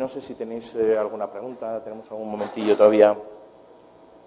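A man speaks through a microphone in an echoing hall.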